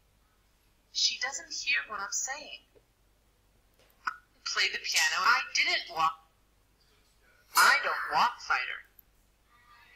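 A young man speaks calmly and clearly, as if reading out lines.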